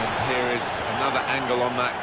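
A ball is struck with a thump.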